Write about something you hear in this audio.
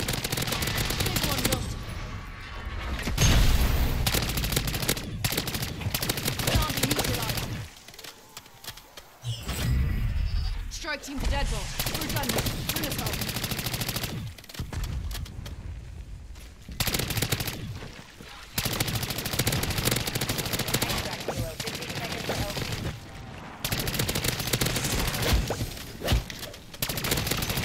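Rapid gunfire rattles with loud bursts and blasts.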